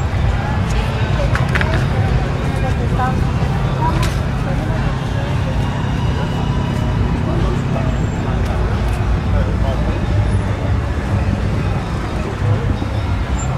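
A crowd of diners chatters nearby.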